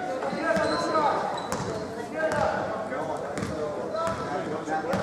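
Spectators and players talk and call out in an echoing hall.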